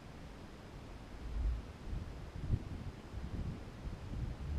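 Wind buffets against a microphone in low, gusty rumbles.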